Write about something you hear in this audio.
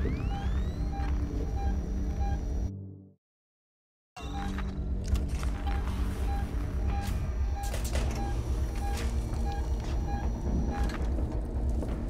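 A motion tracker beeps in short, regular pulses.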